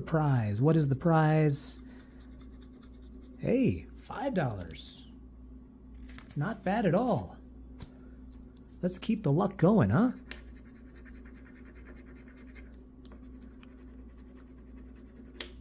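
A coin scratches at a card with soft, quick rasping strokes.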